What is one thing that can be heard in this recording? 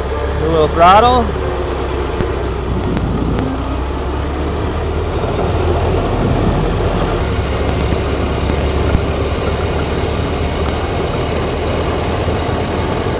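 An old car engine rumbles steadily while driving.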